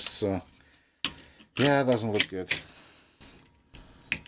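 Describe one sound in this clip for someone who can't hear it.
A plastic tape reel clicks onto a spindle.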